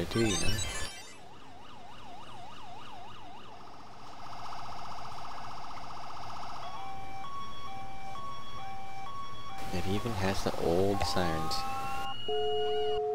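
A police siren wails and changes its tone.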